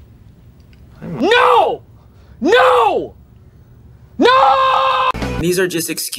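A man screams loudly several times.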